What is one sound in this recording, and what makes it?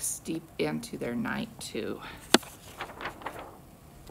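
A book page turns with a soft rustle.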